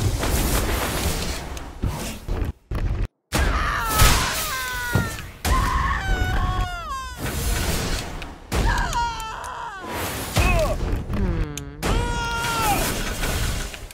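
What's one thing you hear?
Explosive bursts and wet splatters go off again and again.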